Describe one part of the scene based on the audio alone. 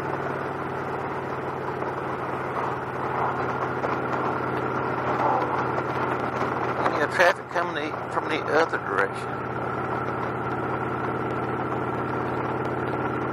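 A V-twin cruiser motorcycle engine hums steadily while cruising on a road.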